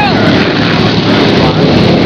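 A race car drives past with a roaring engine.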